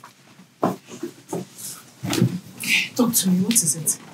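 Sofa cushions thump softly as people sit down.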